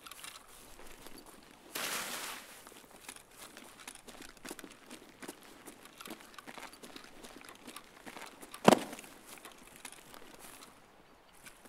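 Footsteps crunch and rustle through grass and brush.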